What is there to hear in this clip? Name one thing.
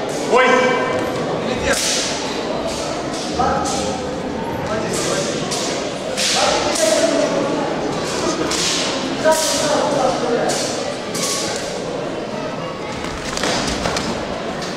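Gloved punches and kicks thud against bodies and pads.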